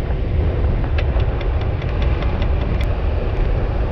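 A bicycle freewheel ticks rapidly.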